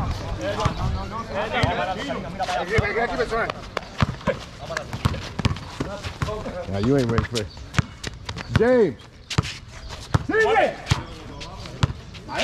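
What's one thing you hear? A basketball bounces on hard pavement.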